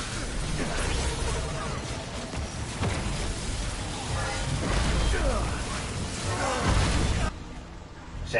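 Gunshots fire rapidly amid loud blasts.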